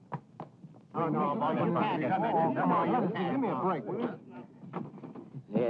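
A man speaks forcefully, arguing.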